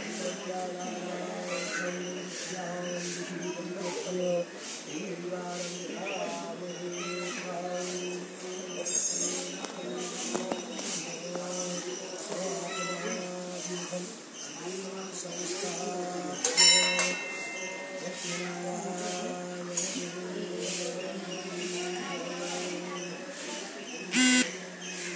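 A man chants steadily nearby.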